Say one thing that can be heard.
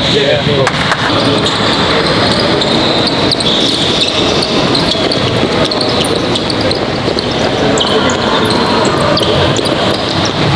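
Many sneakers patter and squeak on an indoor court as a group jogs.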